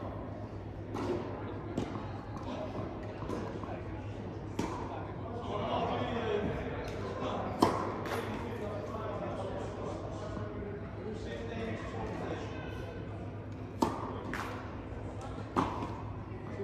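Tennis balls are struck with sharp pops that echo around a large indoor hall.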